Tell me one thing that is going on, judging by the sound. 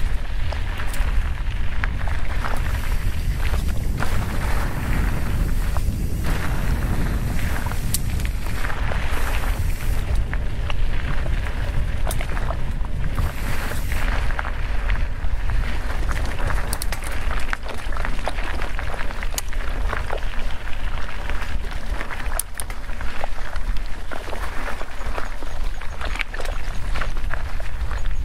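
A bicycle frame clatters and rattles over bumps.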